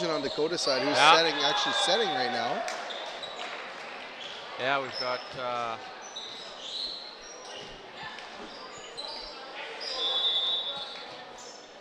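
Sneakers squeak on a gym floor.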